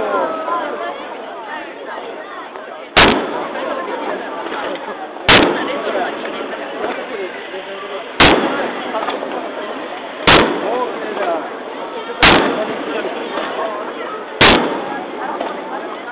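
Fireworks crackle and sizzle after each burst.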